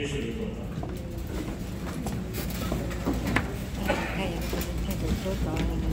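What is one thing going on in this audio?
Chairs creak and shuffle as people sit down.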